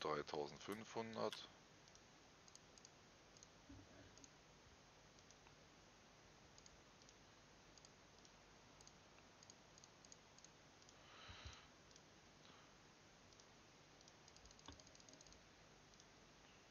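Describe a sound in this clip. Soft clicks sound now and then.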